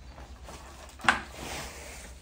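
A heavy roll thumps down upright onto a tiled floor.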